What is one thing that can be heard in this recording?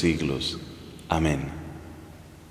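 A man speaks with animation close to a microphone in a large echoing hall.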